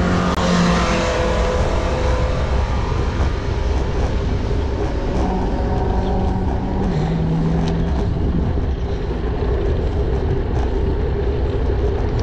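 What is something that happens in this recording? Wind rushes loudly past a cyclist riding fast downhill.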